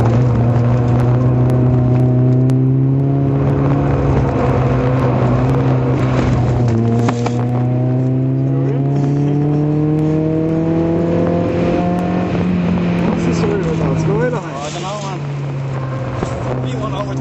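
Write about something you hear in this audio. Wind buffets loudly past the car.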